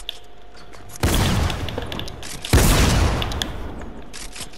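Wooden building pieces slam into place with loud crashing thuds.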